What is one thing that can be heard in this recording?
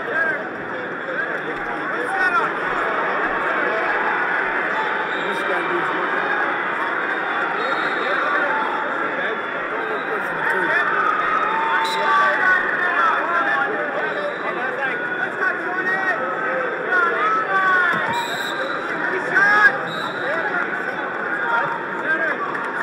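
A large crowd murmurs and shouts throughout an echoing arena.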